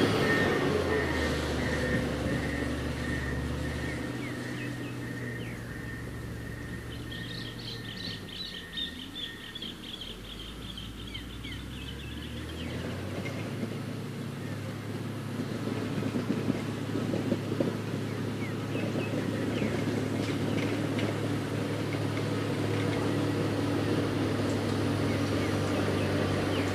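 A heavy diesel engine rumbles as a road grader drives away and fades, then grows louder as it comes back.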